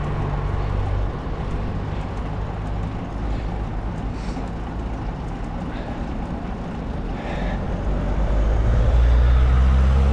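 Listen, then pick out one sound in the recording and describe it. Wind rushes loudly past, growing stronger toward the end.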